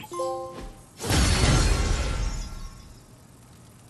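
A loud rushing whoosh sounds as an upgrade completes.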